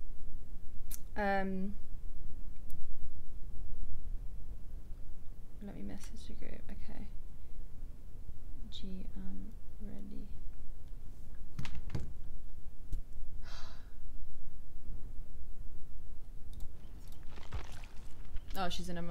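A young woman speaks casually into a nearby microphone, in short bursts.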